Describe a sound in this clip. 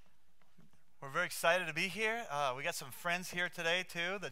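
A man speaks calmly through a microphone in a hall.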